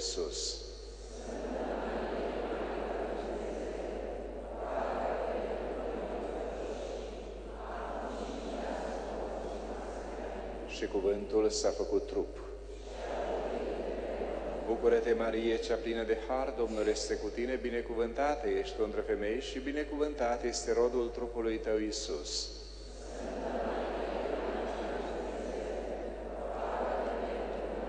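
A congregation recites prayers together in unison.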